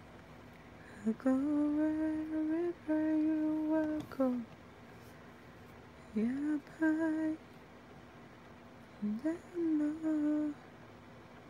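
A woman sings long, held notes close to the microphone.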